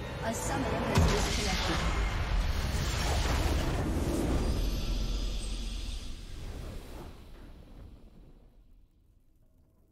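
A triumphant victory fanfare swells and then fades away.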